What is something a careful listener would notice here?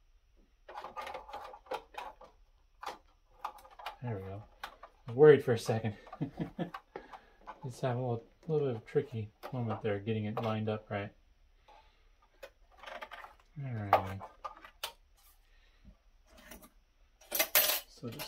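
Plastic parts click and rattle as they are fitted into place.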